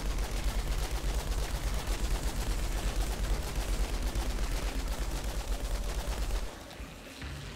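Rapid gunfire rattles in a steady stream.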